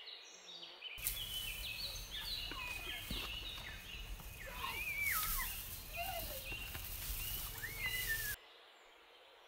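A cow munches and crunches dry hay up close.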